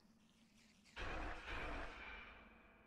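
A magic spell bursts with a crackling whoosh.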